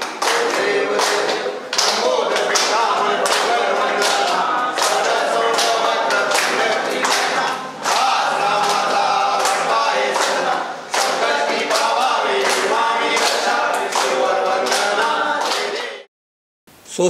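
A group of men and women sing a devotional chant together.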